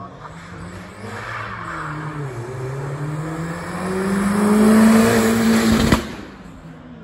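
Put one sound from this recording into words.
A racing car engine revs hard and roars past close by.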